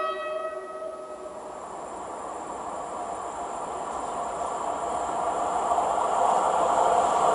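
An approaching train rumbles, growing steadily louder.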